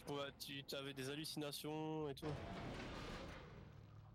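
Heavy metal doors slide open with a hiss.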